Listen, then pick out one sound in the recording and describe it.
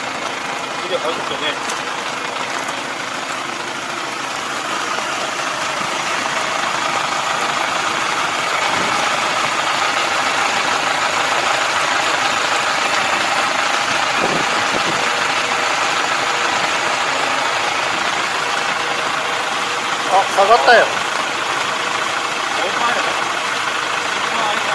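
A rotary tiller churns wet soil with a steady whir.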